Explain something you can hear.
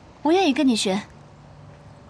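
A young woman speaks cheerfully nearby.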